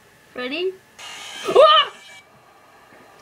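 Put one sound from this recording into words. A loud electronic screech blares briefly from a laptop speaker.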